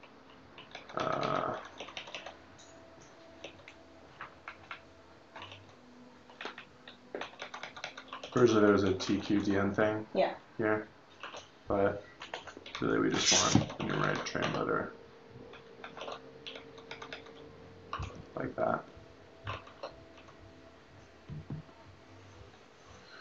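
Keys on a keyboard click in quick taps.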